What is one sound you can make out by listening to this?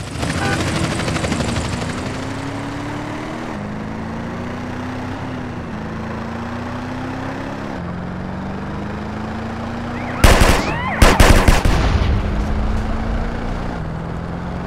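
A car engine hums and revs repeatedly as it shifts up through gears.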